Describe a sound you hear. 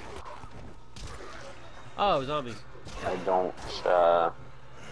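A heavy club thuds into flesh with a wet squelch.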